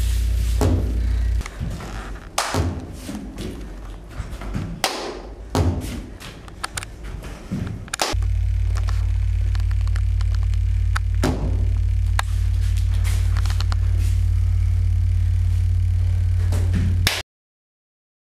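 Bare feet thump and slide on a wooden floor.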